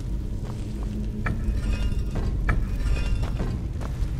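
A heavy stone pillar grinds as it turns.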